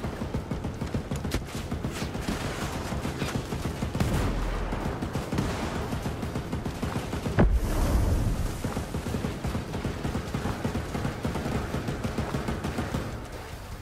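Water splashes and churns as a swimmer strokes through it.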